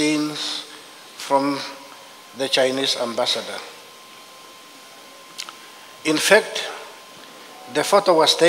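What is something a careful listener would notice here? A middle-aged man reads out calmly through a microphone, with pauses.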